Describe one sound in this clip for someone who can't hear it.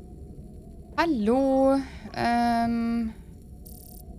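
A young woman speaks briefly and with animation into a close microphone.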